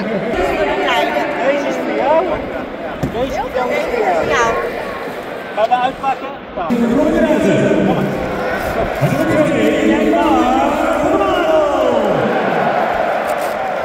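Men and women chat close by.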